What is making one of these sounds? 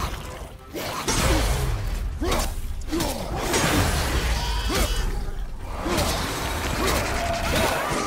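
An axe swings and strikes with heavy thuds.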